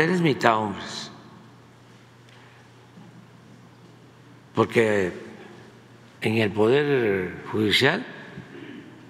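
An elderly man speaks slowly and deliberately into a microphone, with pauses.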